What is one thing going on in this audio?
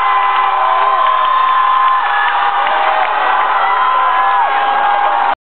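A man sings long, held notes into a microphone.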